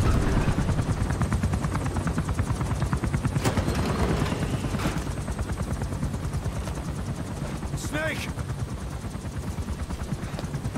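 A helicopter rotor thumps rapidly and steadily nearby.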